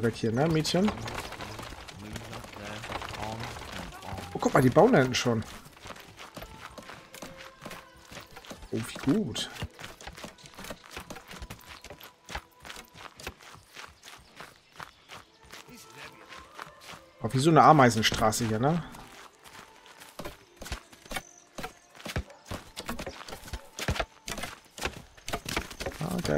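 Footsteps tread steadily on dirt and grass.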